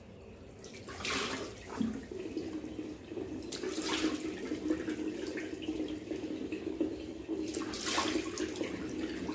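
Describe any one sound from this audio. A man splashes water onto his face.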